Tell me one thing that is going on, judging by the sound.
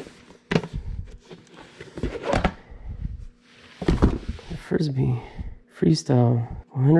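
Hard plastic discs knock and scrape as they are handled.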